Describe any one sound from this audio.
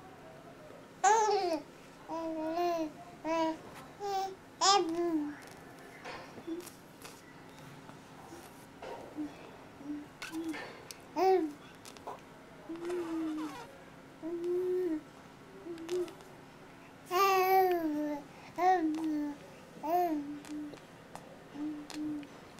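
A baby coos and babbles close by in short bursts.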